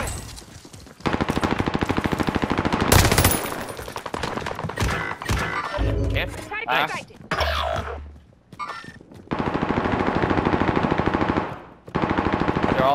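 An automatic gun fires rapid bursts at close range.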